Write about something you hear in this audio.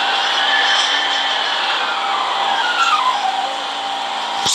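A train motor whines and drops in pitch as the train slows.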